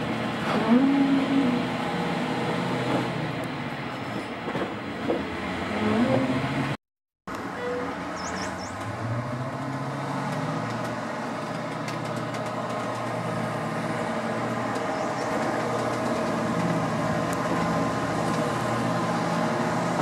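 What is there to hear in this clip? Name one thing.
A steam train rumbles steadily along the track.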